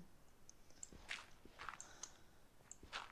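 Blocks of dirt crunch as a shovel digs into them.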